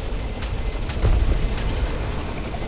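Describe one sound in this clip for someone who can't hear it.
Rocks crash and tumble.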